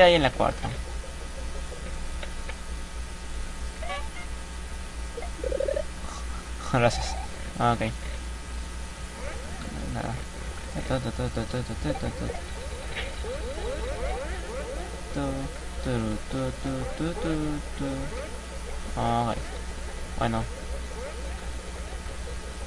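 Game music plays with bouncy tones.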